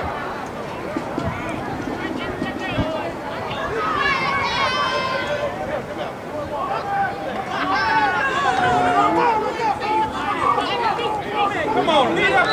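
A crowd of adults and children shouts and cheers outdoors.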